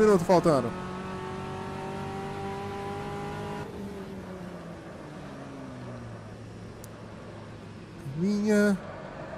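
A racing car engine revs up and drops in pitch through gear changes.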